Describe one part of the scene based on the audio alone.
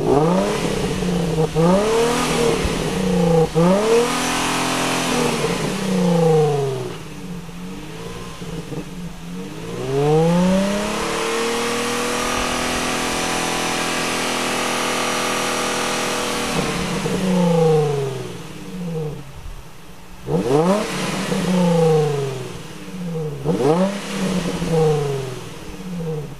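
A car engine revs hard, again and again, close by.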